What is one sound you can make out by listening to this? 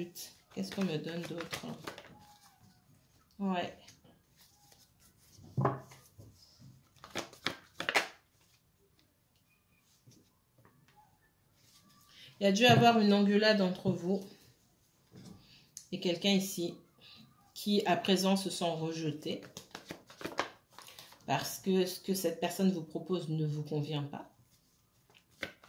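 Playing cards are shuffled and laid softly onto a cloth.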